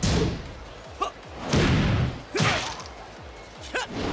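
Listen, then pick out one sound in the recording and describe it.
A body slams to the ground with a heavy thump.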